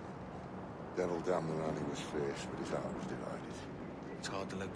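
A second man answers gruffly, close by.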